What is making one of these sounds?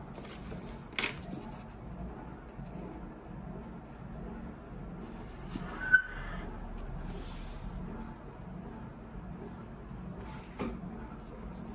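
Hands tap and knock on a table.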